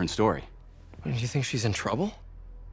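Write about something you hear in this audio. A young man asks a question calmly, close by.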